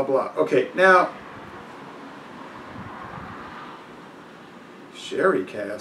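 A man speaks calmly close by, pausing between phrases.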